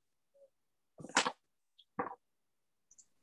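A second woman speaks briefly over an online call.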